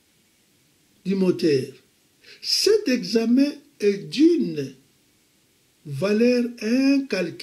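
An elderly man speaks slowly and expressively, close by.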